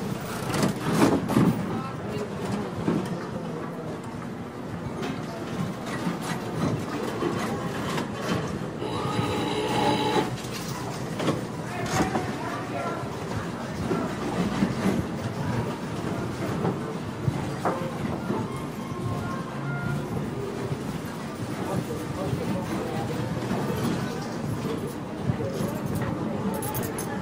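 Slot machines chime and jingle.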